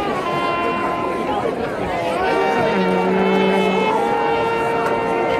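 A marching band plays brass and drums loudly outdoors.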